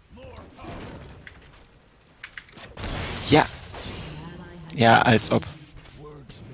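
Magic spells burst and crackle during a fight in a video game.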